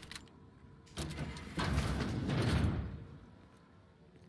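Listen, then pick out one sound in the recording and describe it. A heavy metal door slides open with a rumbling hiss.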